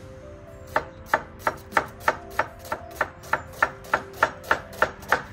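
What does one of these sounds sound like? A knife chops quickly and evenly through an onion on a wooden board.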